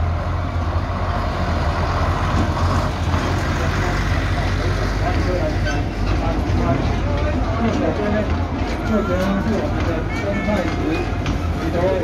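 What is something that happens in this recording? Passengers chatter and call out from the passing train cars.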